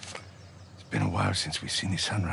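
A second man answers with a low, rough voice.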